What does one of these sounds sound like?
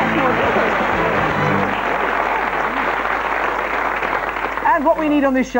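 A studio audience applauds and cheers loudly.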